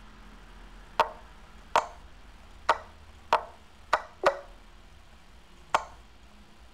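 Short digital clicks sound as chess pieces are moved in a game.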